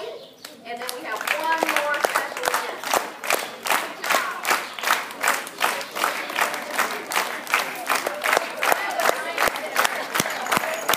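Children cheer and shout.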